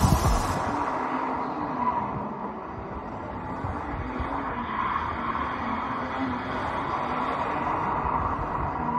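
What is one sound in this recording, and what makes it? A car engine revs hard as the car slides through a turn.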